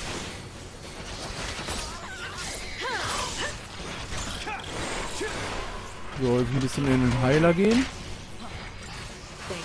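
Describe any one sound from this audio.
Swords slash and clang in a fast fight.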